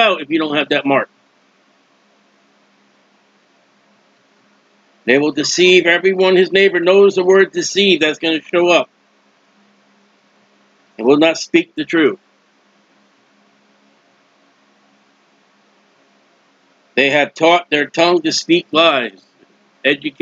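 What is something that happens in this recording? A middle-aged man speaks calmly and closely into a microphone, in bursts with pauses.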